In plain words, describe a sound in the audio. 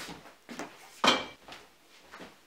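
A fridge door thumps shut.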